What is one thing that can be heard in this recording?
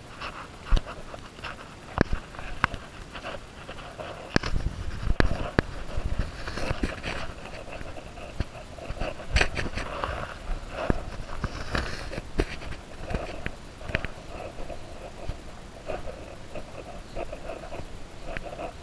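Leaves and branches rustle and brush past.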